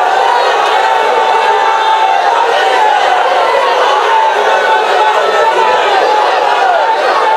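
A large crowd chants and cheers loudly outdoors.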